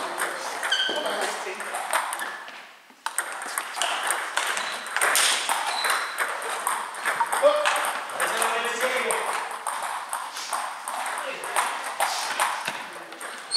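Table tennis balls click rapidly on tables and paddles in a large echoing hall.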